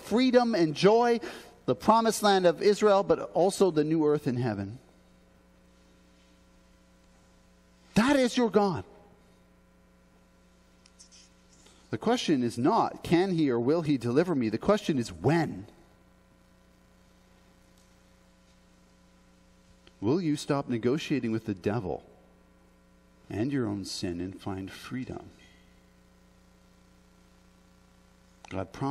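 A man speaks calmly into a headset microphone, in bursts with pauses.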